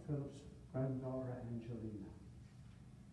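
An elderly man reads aloud calmly.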